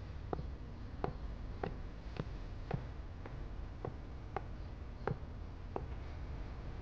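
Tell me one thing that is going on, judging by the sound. Heels click on a hard floor.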